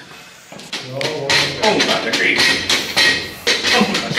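A metal bench creaks and rattles as it is tipped.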